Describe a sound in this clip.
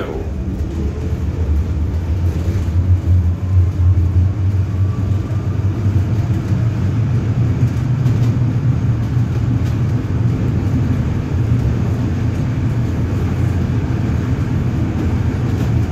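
A tram rumbles steadily from inside.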